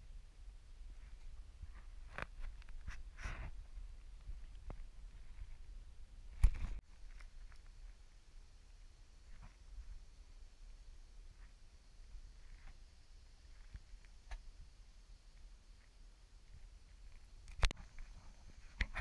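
Small waves lap softly against a kayak hull.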